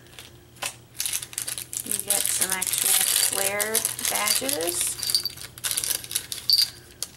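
A plastic packet crinkles and rustles.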